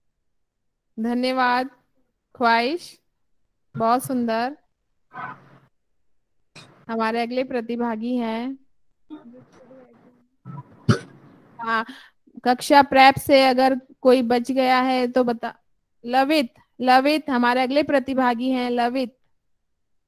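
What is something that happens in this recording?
A woman recites steadily into a microphone, heard through an online call.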